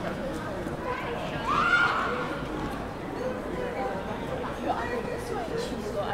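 Young women chat quietly as they walk past outdoors.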